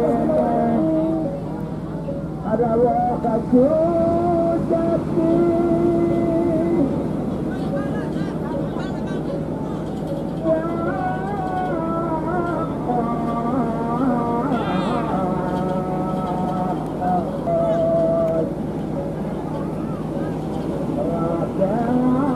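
A bow hummer on a flying kite drones with a wavering tone.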